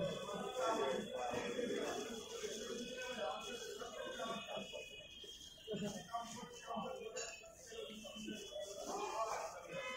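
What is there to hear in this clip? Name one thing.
A metal spoon scrapes and scoops food.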